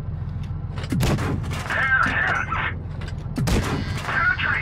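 A tank cannon fires.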